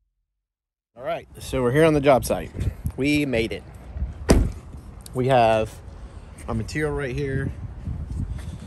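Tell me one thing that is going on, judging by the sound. A man talks casually and close by.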